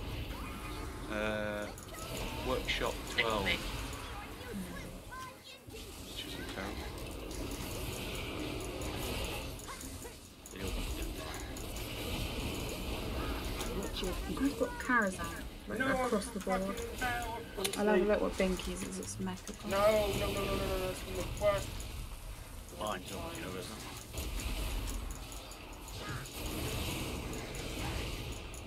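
Magic spells crackle and boom in a fast battle.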